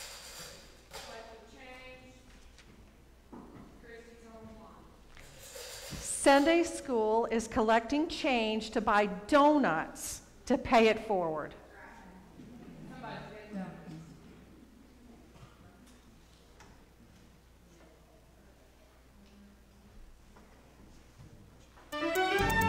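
A woman speaks through a microphone in a large echoing room.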